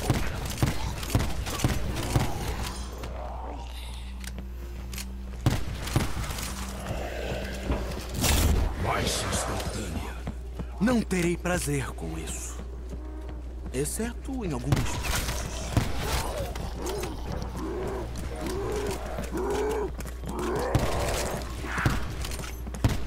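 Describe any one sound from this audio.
Zombies groan and snarl.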